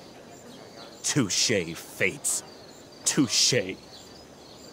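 A man speaks dramatically, close by.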